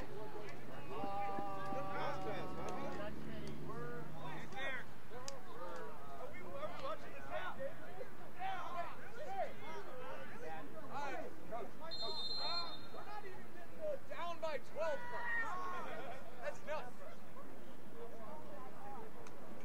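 A crowd of young men and boys shouts and cheers nearby outdoors.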